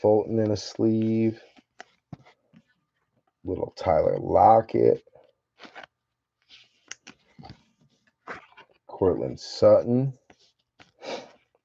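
A plastic card sleeve crinkles softly as cards slide in and out.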